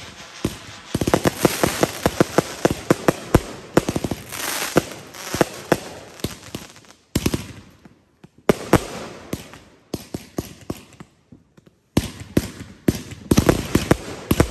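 A fountain firework hisses and roars.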